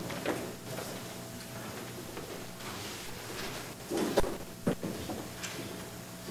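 Shoes tap on a wooden floor.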